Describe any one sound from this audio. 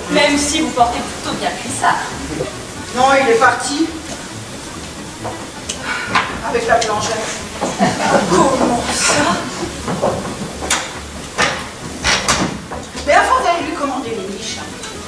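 A man talks with animation, heard from a distance in a large hall.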